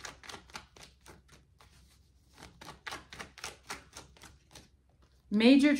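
Cards riffle and flick rapidly as they are shuffled.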